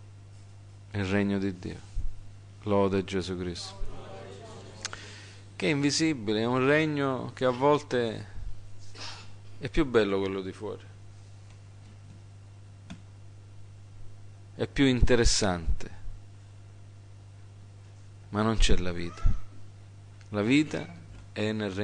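A middle-aged man speaks with feeling into a microphone, in bursts with pauses.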